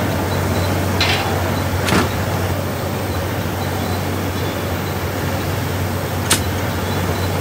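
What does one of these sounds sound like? A metal bar clanks sharply against metal.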